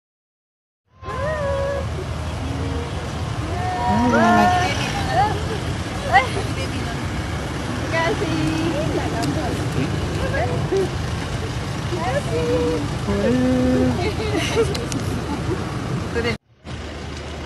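Car engines hum as vehicles pass slowly on a road.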